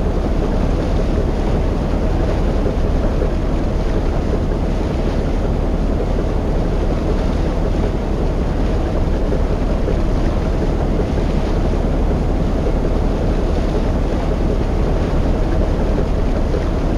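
A boat engine rumbles steadily and low.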